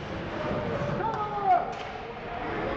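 Young players on a bench shout in an echoing rink.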